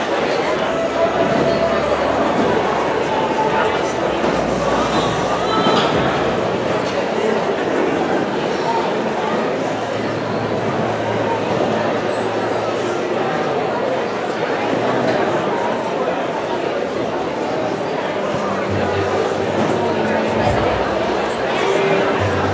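A band plays music in a large hall.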